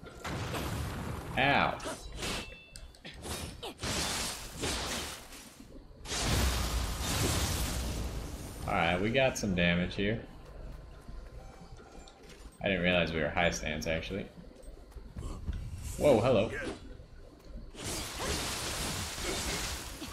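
Blades slash and strike in a fight.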